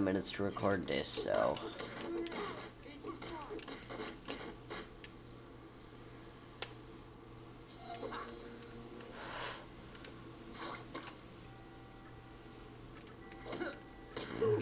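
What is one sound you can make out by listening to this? Video game music and effects play.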